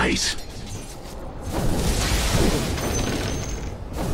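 Weapons clash and hit in a fight.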